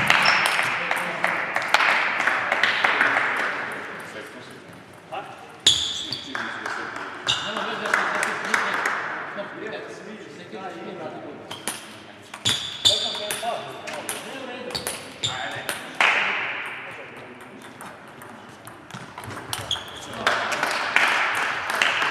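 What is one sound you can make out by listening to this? A table tennis ball clicks sharply back and forth off paddles and a table in a large echoing hall.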